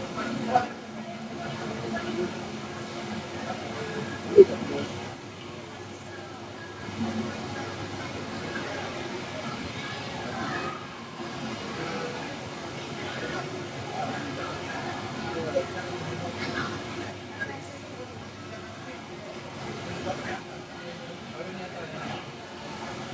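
A crowd of people chatter in a large echoing hall.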